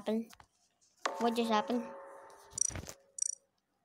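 A loud electronic alarm blares.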